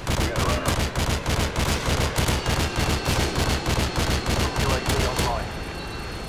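Heavy cannon fire thuds rapidly and steadily.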